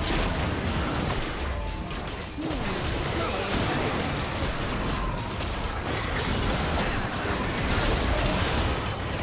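Game spell effects crackle and blast in a fast battle.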